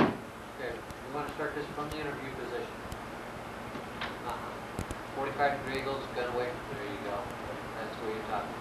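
A man talks calmly, explaining.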